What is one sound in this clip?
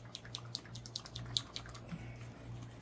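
A spray can rattles quickly as it is shaken.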